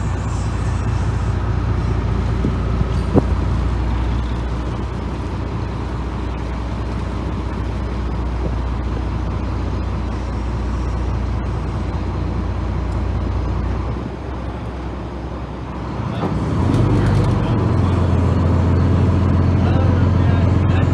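A boat engine rumbles steadily close by.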